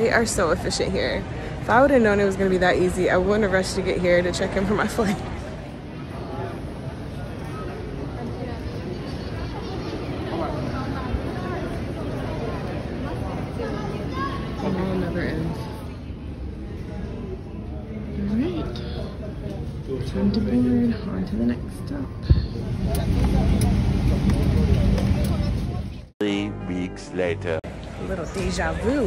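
A young woman talks cheerfully and close to a microphone.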